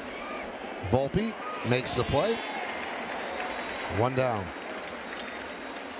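A crowd cheers as a ball is caught.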